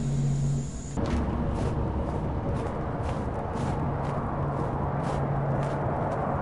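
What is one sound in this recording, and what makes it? Footsteps crunch steadily on stone.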